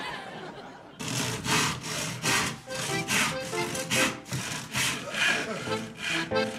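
A hand saw cuts through wood with quick rasping strokes.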